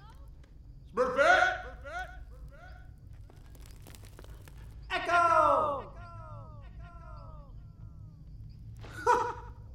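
A young man shouts out, his voice echoing and fading as in a large cave.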